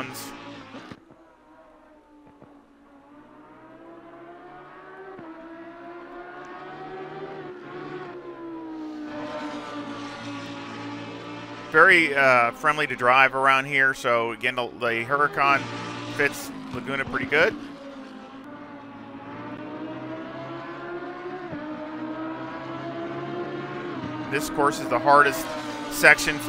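A racing car engine roars, rising in pitch as it speeds up and shifting gears.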